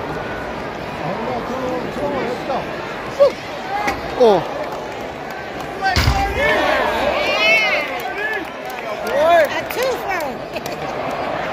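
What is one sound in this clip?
Fans shout and whistle loudly.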